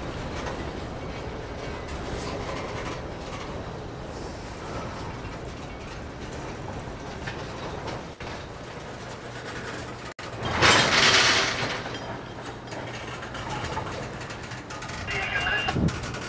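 Steel wheels clack over rail joints.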